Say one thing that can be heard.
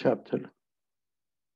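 A man speaks briefly, close to a microphone.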